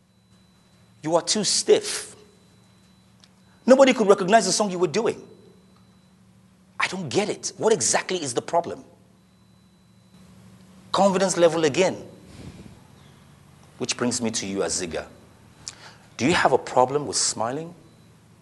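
A man speaks with animation in short bursts, with pauses between.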